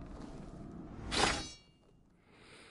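A sword slides into its scabbard with a sharp metallic ring.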